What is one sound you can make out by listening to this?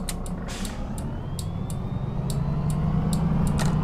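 A bus engine revs up as the bus pulls away.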